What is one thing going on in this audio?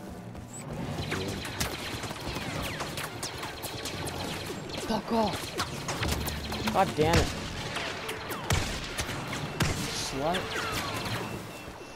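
Blaster shots fire in quick bursts.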